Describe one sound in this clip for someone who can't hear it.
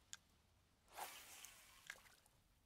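A fishing rod swishes through the air in a quick cast.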